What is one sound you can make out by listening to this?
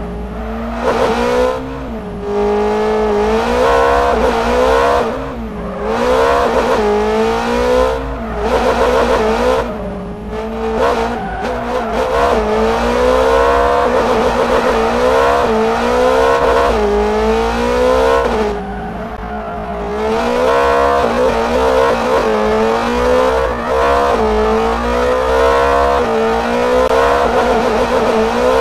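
A car engine revs hard, its pitch rising and falling again and again.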